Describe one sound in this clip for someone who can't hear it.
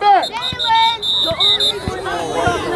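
A whistle blows in short sharp bursts.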